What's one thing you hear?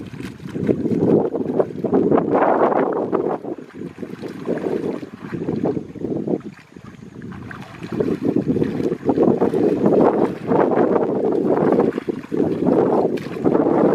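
Water splashes as people wade through a shallow pond.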